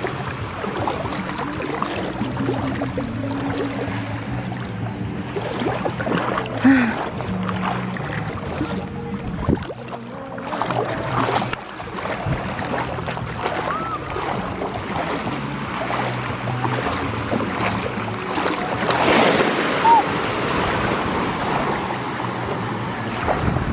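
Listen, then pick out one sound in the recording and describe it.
Small waves wash and fizz around the feet.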